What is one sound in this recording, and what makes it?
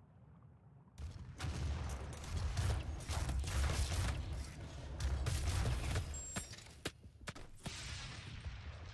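Shotgun blasts fire in rapid bursts.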